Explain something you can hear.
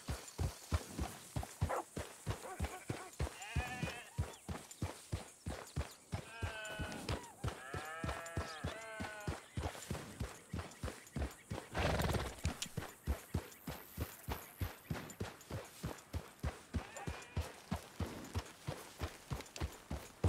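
A horse's hooves thud steadily in a quick, even rhythm on a dirt path.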